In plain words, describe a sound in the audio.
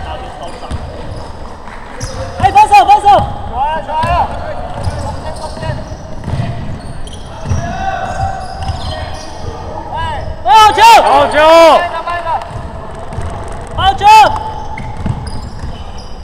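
A basketball is dribbled on a hardwood floor.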